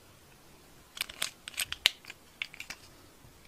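Small beads rattle inside a glass jar.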